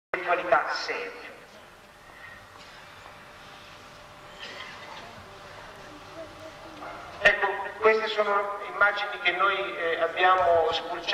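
A man speaks with animation into a microphone, heard through a loudspeaker outdoors.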